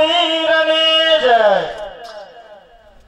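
A man sings a long held note through a loudspeaker, then lets it slide down and fade.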